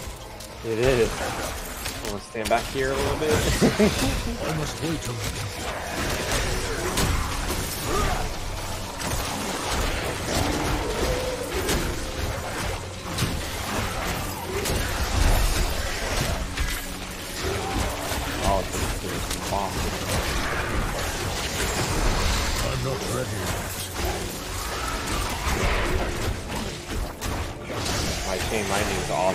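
Magic spells crackle and explode in quick bursts.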